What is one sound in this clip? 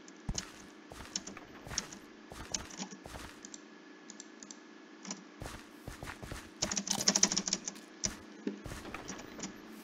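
Footsteps patter quickly over dirt and wood.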